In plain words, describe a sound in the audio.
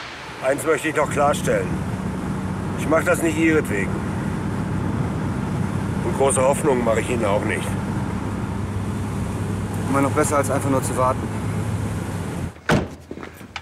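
A car engine hums steadily from inside.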